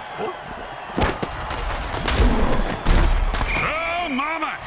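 Heavy armoured bodies crash together with loud thuds.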